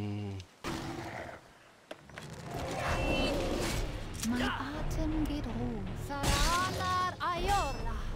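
Fiery magic blasts whoosh and crackle.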